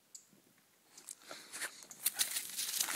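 Leaves and ferns rustle close by as someone pushes through them.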